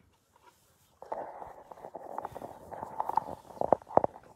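A horse munches feed from a tub, crunching loudly and close.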